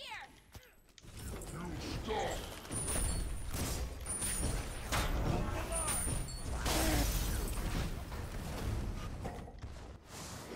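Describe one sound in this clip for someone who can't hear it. Spell blasts and impact effects crash and whoosh in a fast video game fight.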